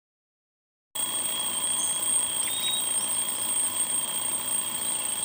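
An alarm clock rings steadily nearby.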